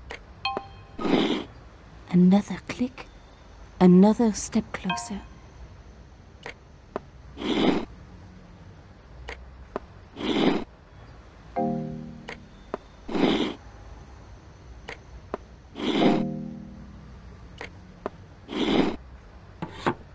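A stone dial turns with repeated grinding clicks.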